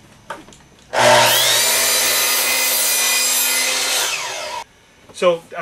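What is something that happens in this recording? A power miter saw whines loudly as it cuts through wood, then winds down.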